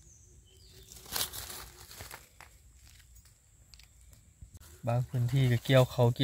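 A knife cuts through soft mushroom stems.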